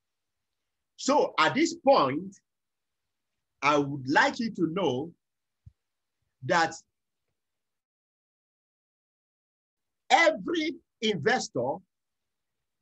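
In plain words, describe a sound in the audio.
A middle-aged man speaks in bursts through an online call, with pauses between phrases.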